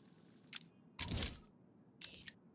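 A game menu gives a short whoosh as it opens.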